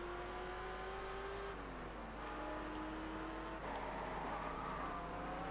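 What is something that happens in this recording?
A car engine roars at high revs, dropping in pitch as it shifts gears.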